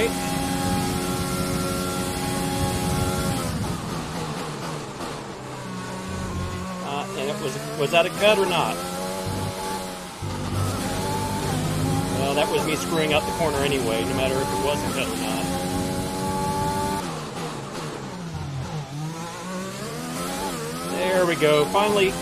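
A racing car engine screams at high revs, rising and dropping in pitch with each gear change and corner.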